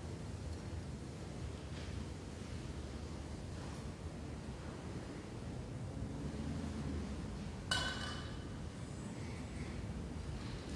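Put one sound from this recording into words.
A man speaks quietly in a large echoing hall.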